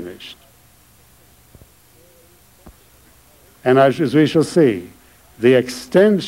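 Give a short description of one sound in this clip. An elderly man speaks slowly and deliberately into a microphone, with pauses.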